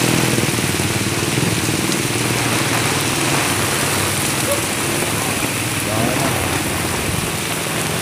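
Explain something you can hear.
Heavy rain pours down steadily outdoors, splashing on the pavement.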